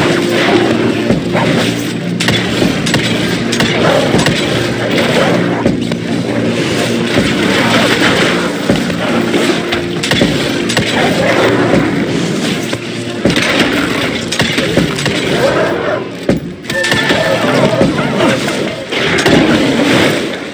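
Creatures snarl and screech.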